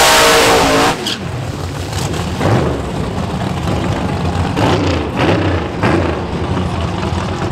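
Another car's engine rumbles nearby.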